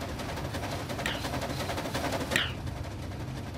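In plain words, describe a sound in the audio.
A steam train's whistle blows briefly, twice.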